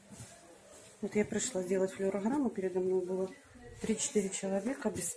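A middle-aged woman speaks calmly close to the microphone.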